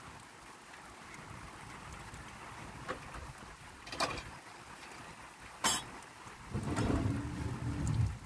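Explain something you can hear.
Dishes clink in a basin of water.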